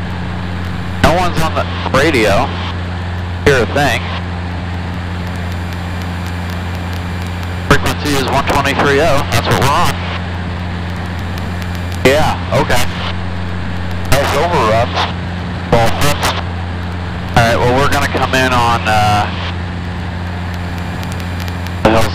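A man speaks calmly through a headset microphone, heard over an intercom.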